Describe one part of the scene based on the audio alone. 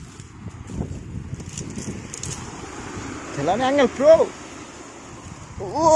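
Bare feet step and rustle over dry leaves and stalks.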